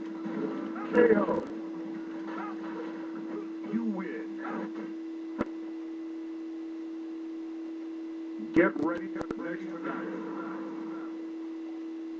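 Video game sound effects blare from a television speaker in bursts.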